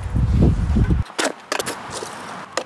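A plastic bottle is kicked and clatters across pavement.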